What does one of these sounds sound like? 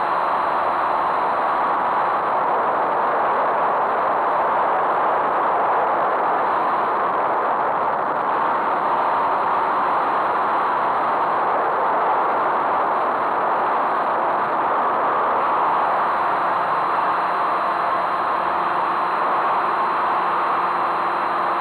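Wind rushes loudly past the aircraft.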